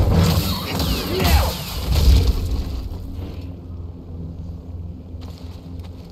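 A glowing energy blade hums and swooshes through the air.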